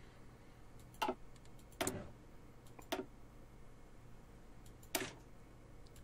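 Short soft clicks sound now and then.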